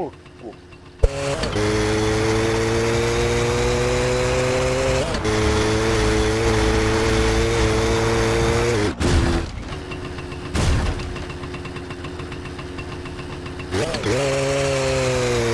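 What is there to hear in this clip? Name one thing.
A small moped engine buzzes steadily, revving now and then.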